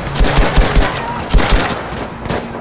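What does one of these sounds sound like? Gunshots crack in quick bursts nearby.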